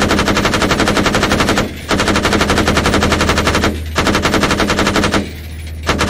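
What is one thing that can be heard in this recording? Automatic rifles fire in long, rapid bursts close by.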